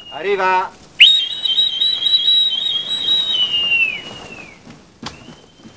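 A boatswain's whistle shrills with a warbling trill, then slides down and stops.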